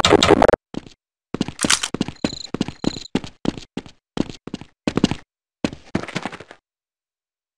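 Footsteps clack steadily on hard ground.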